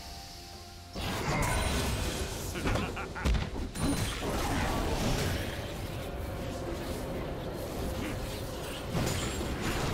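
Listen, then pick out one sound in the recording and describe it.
Game spell effects and weapon hits crackle and clash rapidly.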